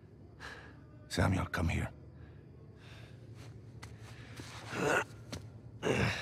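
A man calls out from across the cell.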